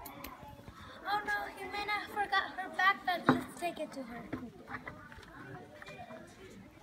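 A young boy talks excitedly nearby.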